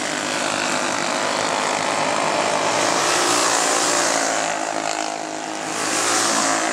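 Small racing engines whine loudly as they speed past outdoors.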